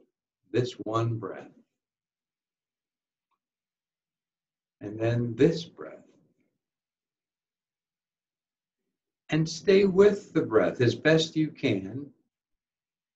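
A man speaks calmly over an online call, in short phrases with pauses.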